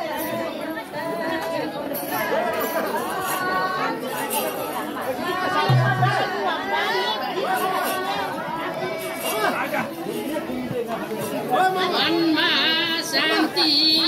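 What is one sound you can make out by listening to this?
Women beat hand drums.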